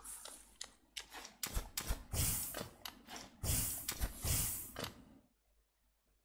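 Sharp swishing and thudding game sound effects play in quick bursts.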